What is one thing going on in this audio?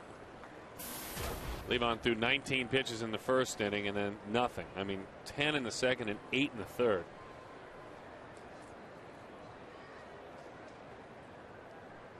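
A large crowd murmurs softly in the background of an open stadium.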